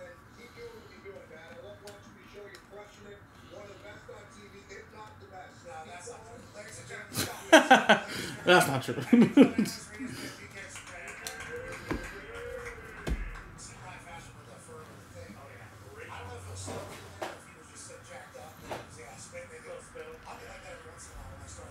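Trading cards slide and flick against each other as a stack is shuffled through.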